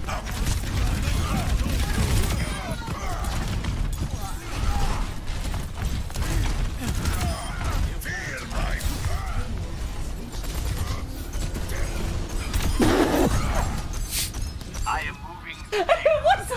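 Gunfire and blasts crackle from a video game.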